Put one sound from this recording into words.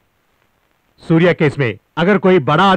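A younger man answers in a low voice.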